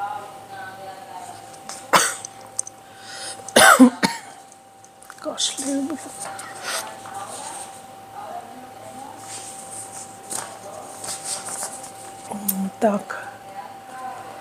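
A woman speaks calmly and softly into a close microphone.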